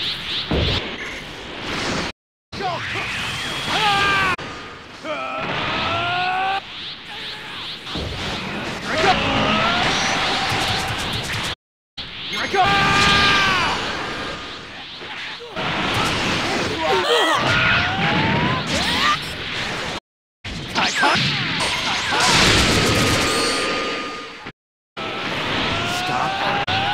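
Energy blasts whoosh and roar loudly.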